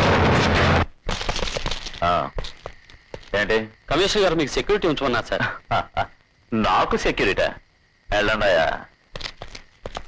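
A man speaks forcefully and loudly.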